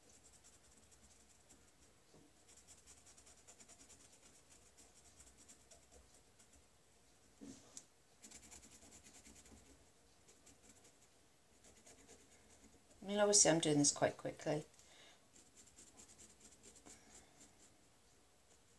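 A felt-tip marker scratches softly on a stone.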